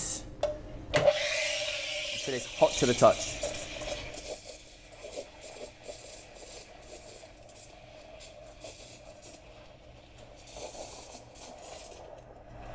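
A steam wand hisses as it froths milk in a jug.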